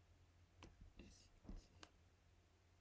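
A man speaks briefly and quietly into a microphone.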